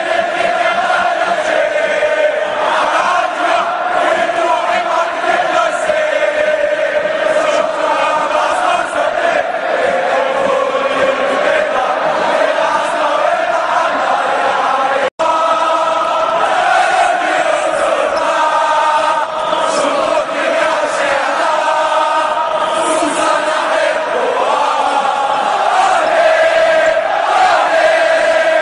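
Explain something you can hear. A large crowd sings a chant together loudly in an open stadium.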